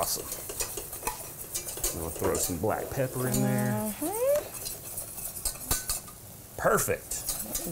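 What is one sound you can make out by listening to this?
A spoon clinks against a pot.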